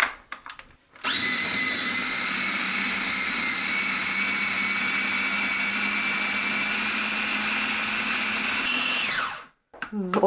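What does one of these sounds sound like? A food processor whirs loudly and steadily, then winds down.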